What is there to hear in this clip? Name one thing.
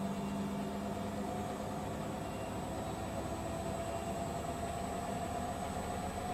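Laundry tumbles softly inside a washing machine drum.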